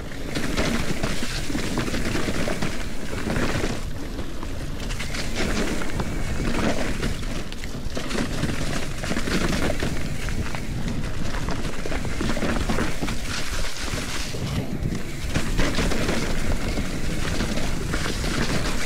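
A mountain bike rattles over roots and rocks.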